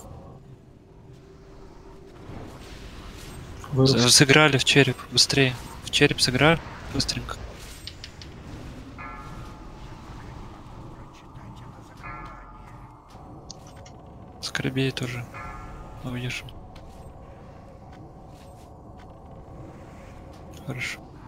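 Magic spells whoosh and crackle in a fantasy game battle.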